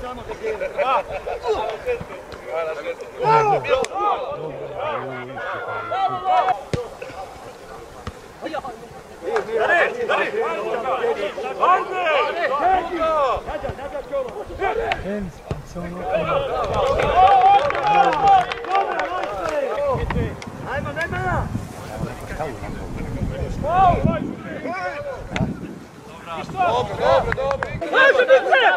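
Men shout and call to each other across an open outdoor field.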